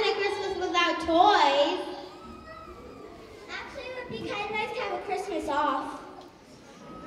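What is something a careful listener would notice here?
A young girl speaks with animation through a microphone and loudspeakers in a large hall.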